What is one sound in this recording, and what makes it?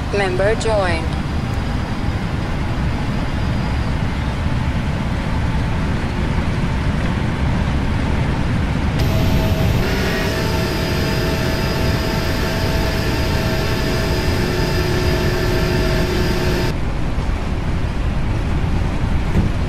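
Jet engines roar steadily as an airliner speeds down a runway.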